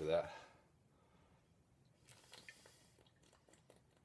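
A man gulps from a glass bottle.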